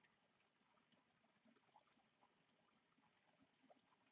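A hummingbird's wings hum softly close by.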